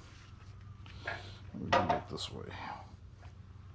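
A tool clatters and knocks as a hand sets it in a bench vise.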